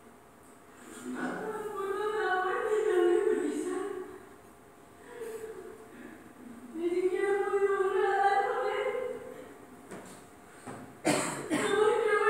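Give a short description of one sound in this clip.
Music plays through loudspeakers in a room.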